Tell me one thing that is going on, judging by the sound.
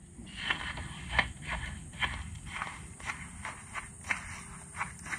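A spoon scrapes and clinks inside a cup, over and over.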